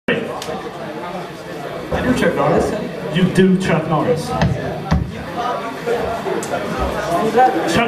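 Drums pound with clashing cymbals.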